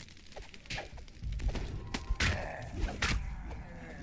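Weapons clash and strike in a fight.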